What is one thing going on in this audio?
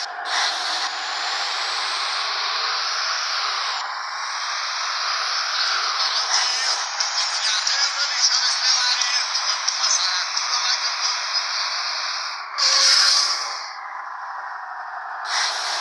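A bus engine hums and revs up as the bus accelerates.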